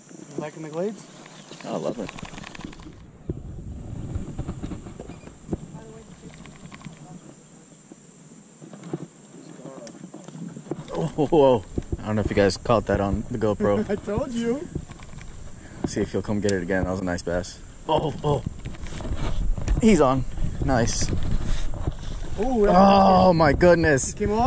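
A fishing reel whirs and clicks as its handle is wound.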